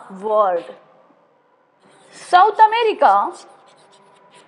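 A woman speaks clearly nearby.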